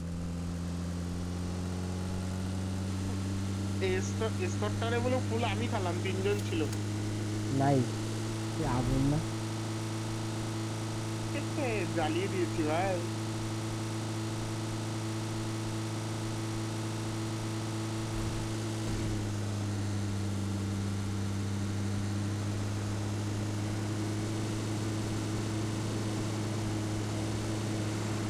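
A vehicle engine hums steadily as a car drives over rough ground.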